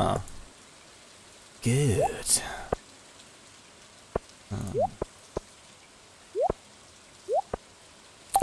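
Short soft blips sound as items are moved around in a game menu.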